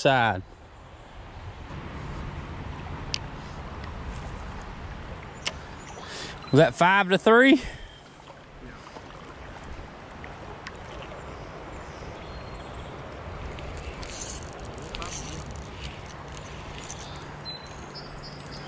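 A river rushes and ripples steadily.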